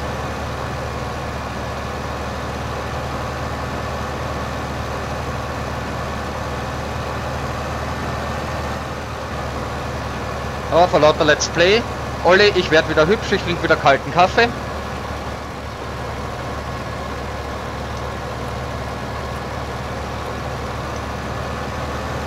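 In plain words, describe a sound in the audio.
A tractor engine hums steadily as it drives along.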